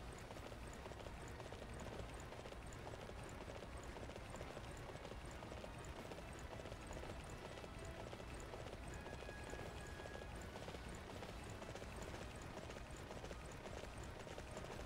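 A horse gallops with steady, rhythmic hoofbeats on soft ground.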